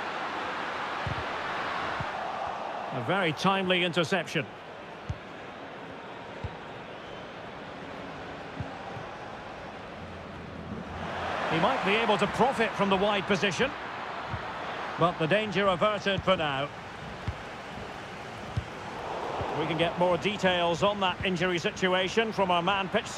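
A stadium crowd roars and cheers, swelling and fading in waves.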